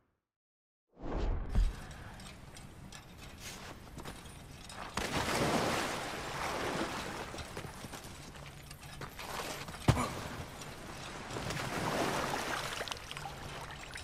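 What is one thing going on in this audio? Boots crunch on rocky ground in an echoing cave.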